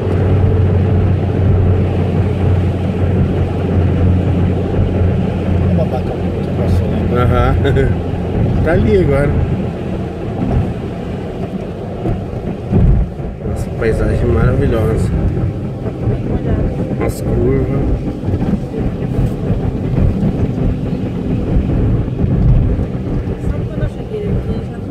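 Tyres roll and hiss on a wet road.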